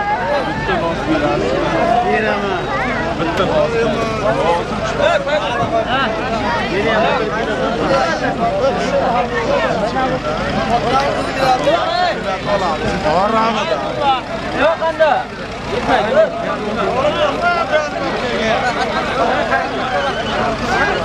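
A large crowd of men talks and shouts outdoors.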